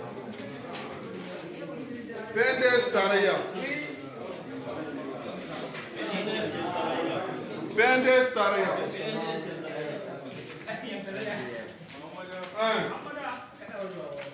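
Several men talk loudly and with animation close by.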